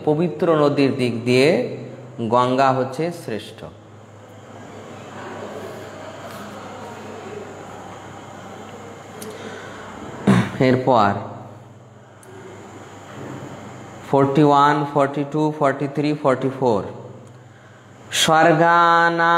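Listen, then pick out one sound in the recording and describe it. A man chants in a low, steady voice close to a microphone, in phrases broken by short pauses.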